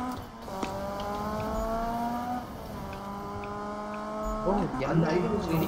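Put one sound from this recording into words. A car engine hums steadily, dropping in pitch as it shifts gears.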